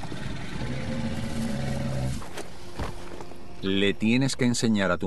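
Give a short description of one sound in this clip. Footsteps run over soft, wet ground.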